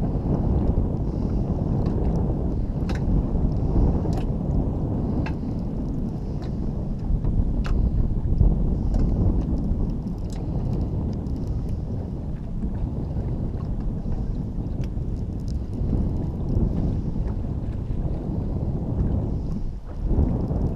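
Wind rumbles and buffets outdoors on open water.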